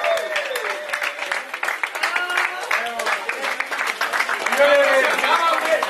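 A crowd of young men cheers and shouts loudly close by.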